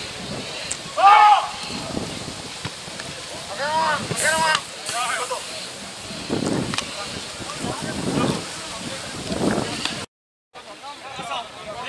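Men shout loudly on an open field.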